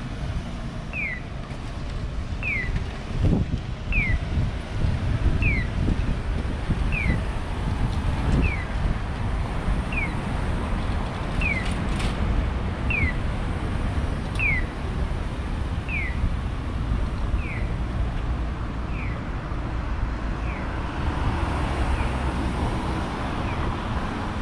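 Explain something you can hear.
A pedestrian crossing signal chirps at a steady, even pace.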